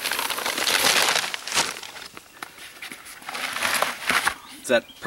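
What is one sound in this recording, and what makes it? Dry powder pours and rustles into a plastic bucket.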